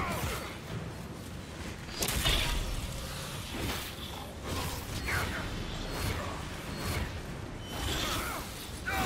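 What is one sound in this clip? Fiery magic blasts whoosh and roar in bursts.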